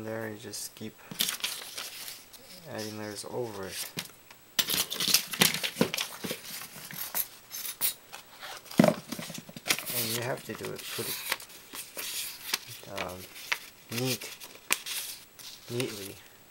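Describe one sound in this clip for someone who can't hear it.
A strip of paper rustles and crinkles as it is handled.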